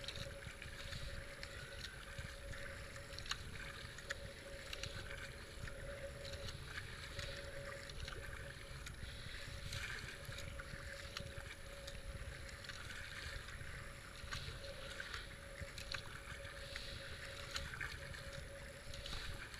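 A paddle splashes into the water in regular strokes.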